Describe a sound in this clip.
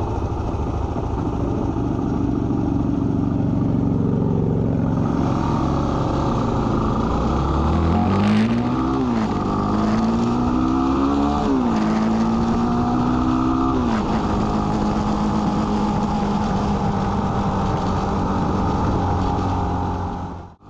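Wind rushes loudly past a moving vehicle.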